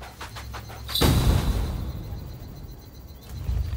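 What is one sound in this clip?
A puff of smoke bursts with a soft whoosh.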